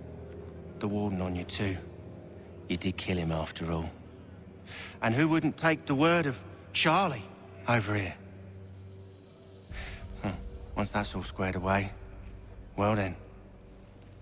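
A man speaks in a low, taunting voice up close.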